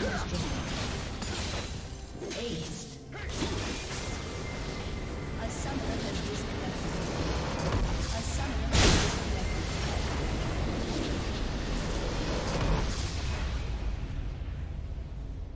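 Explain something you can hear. Game battle effects clash and crackle rapidly.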